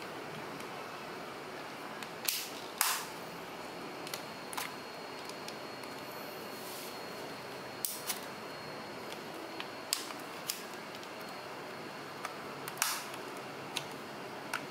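A small tool scrapes and pries at plastic.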